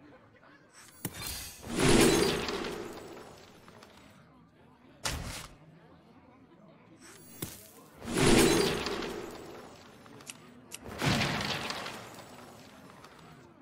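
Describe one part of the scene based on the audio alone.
Game sound effects whoosh and shimmer in bursts that swell and fade.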